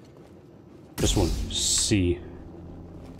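A lightsaber ignites with a loud crackling hum.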